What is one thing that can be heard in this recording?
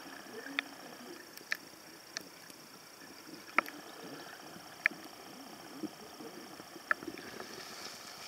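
A diver breathes out underwater, with bubbles gurgling.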